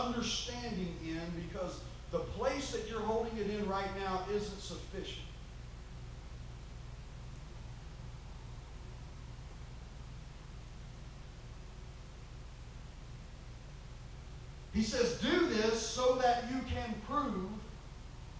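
A man speaks into a microphone in an echoing room, with pauses between phrases.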